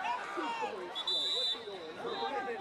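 A referee's whistle blows briefly.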